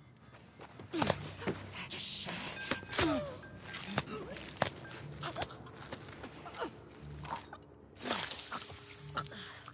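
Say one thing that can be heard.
Heavy blows thud during a close struggle.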